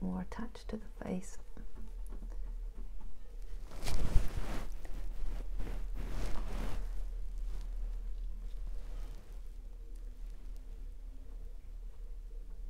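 A paintbrush brushes softly across canvas.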